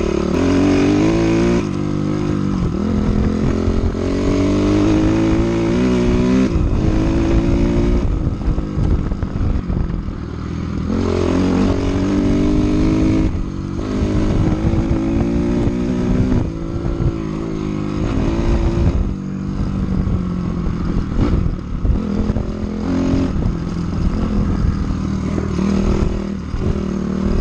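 Tyres crunch over a gravel track.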